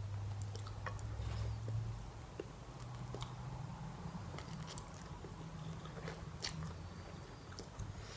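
A woman slurps noodles close up.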